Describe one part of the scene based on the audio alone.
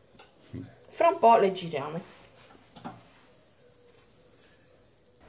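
Oil sizzles softly in a pan.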